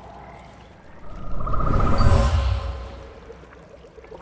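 A deep rushing whoosh swells and fades.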